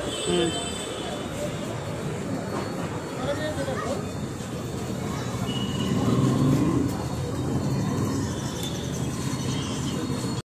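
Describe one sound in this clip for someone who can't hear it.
A crowd of men, women and children chatter outdoors.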